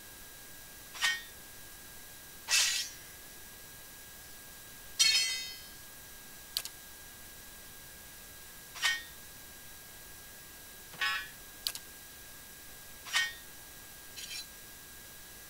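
Short metallic clinks and clanks sound as gear is equipped, one at a time.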